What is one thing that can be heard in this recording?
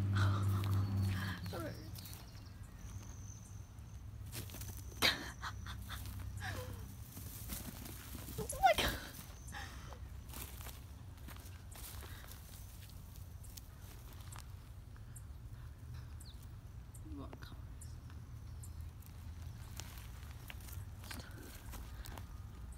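Dry grass rustles under a cat's paws.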